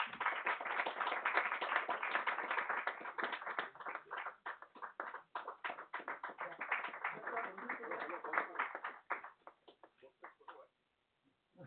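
A small group claps applause indoors.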